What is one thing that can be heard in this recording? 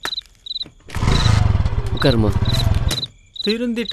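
A motorcycle engine starts and runs roughly.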